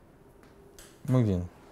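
A middle-aged man speaks briefly through a microphone.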